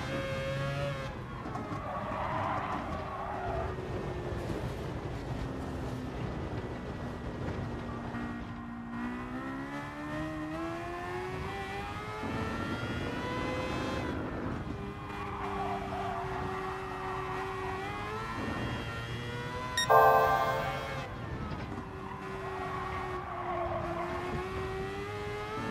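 Tyres squeal through corners.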